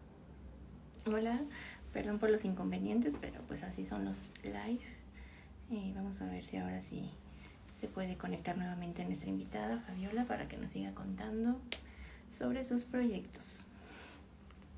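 A middle-aged woman speaks warmly and close to a microphone.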